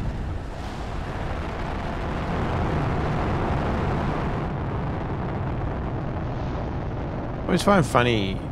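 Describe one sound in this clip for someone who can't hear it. A rocket engine roars with a loud rushing blast.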